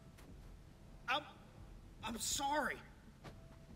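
A man apologises quietly.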